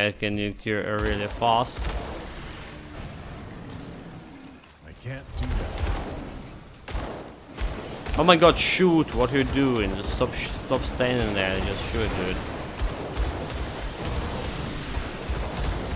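Game spells crackle and boom during a battle.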